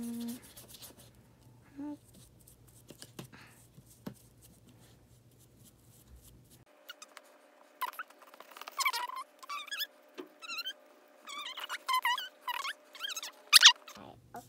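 A paintbrush dabs paint onto a small plastic figure.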